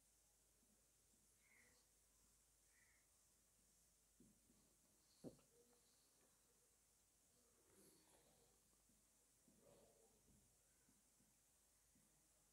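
A marker squeaks faintly as it writes on a whiteboard.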